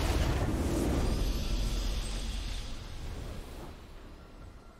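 A triumphant game fanfare swells and then slowly fades.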